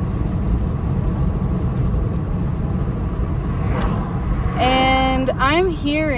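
A car engine and road noise rumble low and steadily from inside a moving car.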